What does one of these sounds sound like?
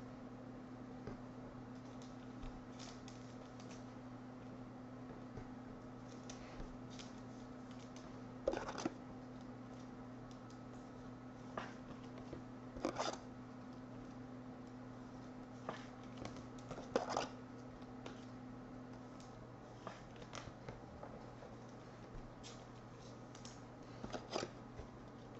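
Trading cards rustle and slide against each other in a pair of hands.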